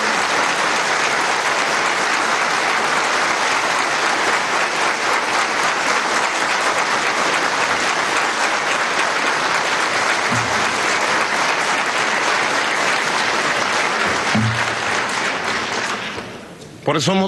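A large crowd applauds in a big echoing hall.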